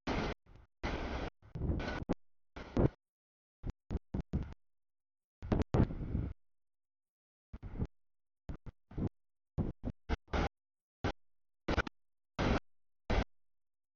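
A freight train rumbles past.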